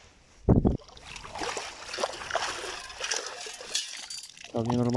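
Water splashes and pours out of a sand scoop.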